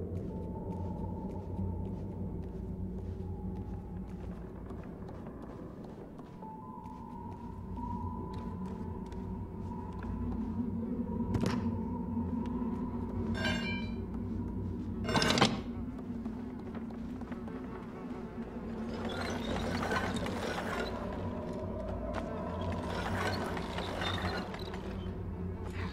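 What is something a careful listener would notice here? Small footsteps patter across creaking wooden floorboards.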